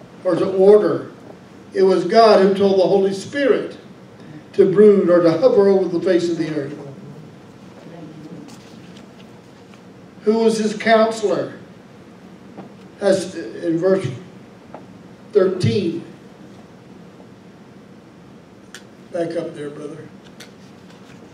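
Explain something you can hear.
A man speaks calmly into a microphone in a room with some echo, pausing often.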